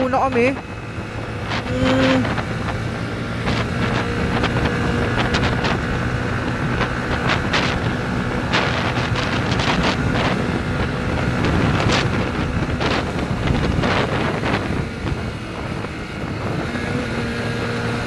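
Wind rushes past loudly outdoors.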